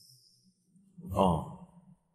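A young man exclaims in surprise, close by.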